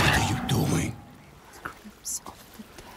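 A young woman answers quietly.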